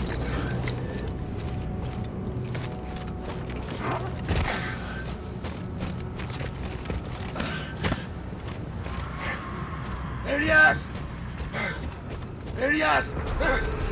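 Heavy footsteps crunch through snow.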